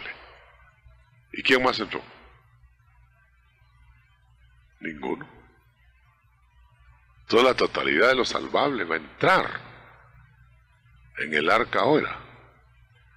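A man preaches with emphasis into a microphone.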